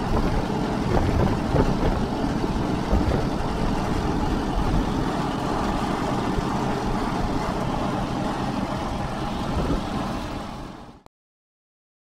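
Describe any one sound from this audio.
A lawn mower engine rumbles loudly and steadily, then cuts out.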